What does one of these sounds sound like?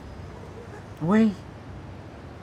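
An elderly woman calls out briefly and loudly nearby.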